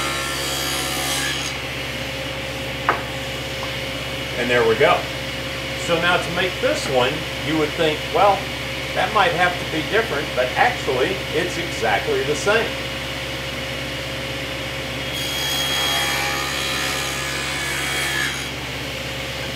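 A table saw blade cuts through wood with a high whine.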